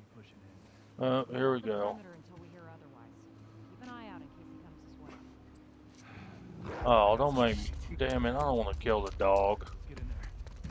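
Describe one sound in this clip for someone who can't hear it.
Men talk nearby in calm, low voices.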